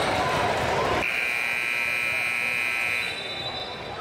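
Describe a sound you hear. A loud buzzer sounds in a large echoing gym.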